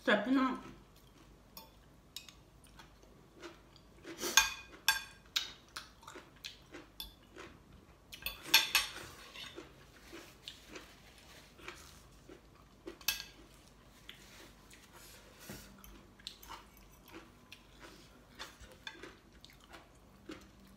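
A young woman chews and slurps food close by.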